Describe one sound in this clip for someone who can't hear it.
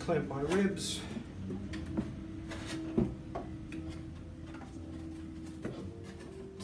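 A man's hands tap and rub on a wooden board.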